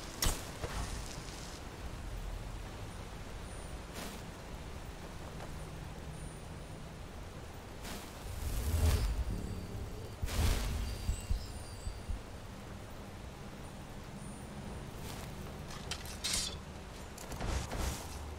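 A low magical hum drones steadily throughout.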